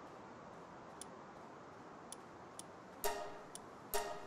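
Short menu clicks tick now and then.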